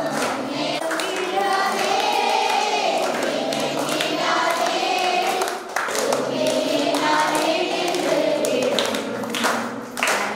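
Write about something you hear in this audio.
A woman speaks into a microphone, heard through a loudspeaker in an echoing room.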